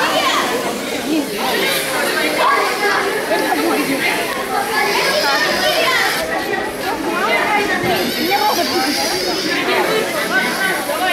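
Children chatter and shout excitedly nearby, in a busy room full of voices.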